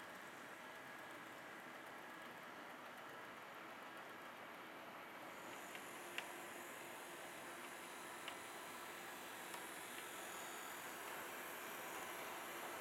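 A model train rumbles steadily along the track.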